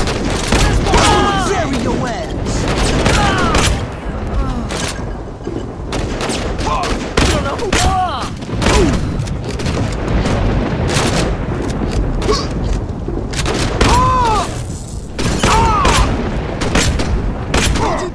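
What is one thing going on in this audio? A handgun fires shots.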